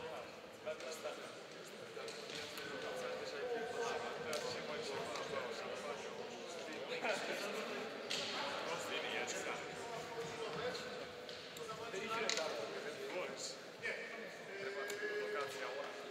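A few men and women chat at a distance in a large echoing hall.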